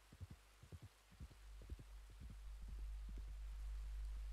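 A horse's hooves thud on a dirt path.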